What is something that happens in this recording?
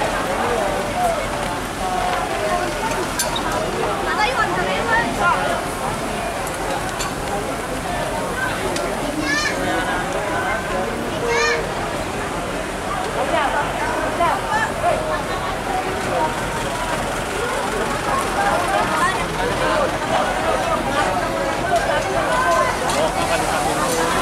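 A large crowd of men and women chatter and shout loudly outdoors.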